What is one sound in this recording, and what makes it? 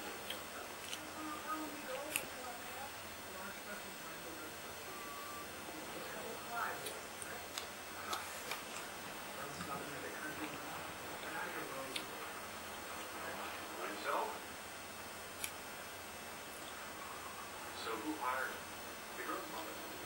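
A young man talks quietly and casually close by.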